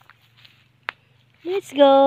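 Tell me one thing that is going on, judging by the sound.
A dog runs across dry leaves on the ground.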